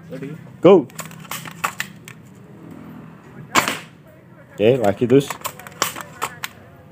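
A toy rifle fires with sharp, snapping shots.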